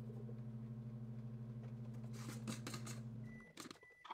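A plastic lid is twisted off a jar.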